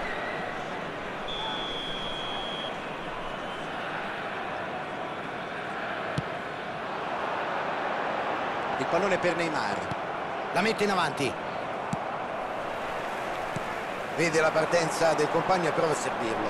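A large stadium crowd murmurs and cheers steadily in the distance.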